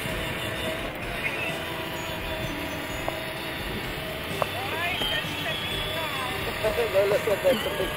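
A small electric toy car hums as it drives over a hard court.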